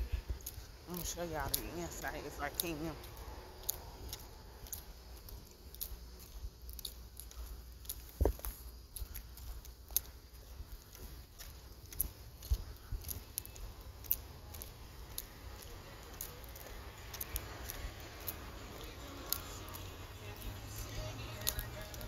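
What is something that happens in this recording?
Footsteps tap on a concrete sidewalk at a steady walking pace.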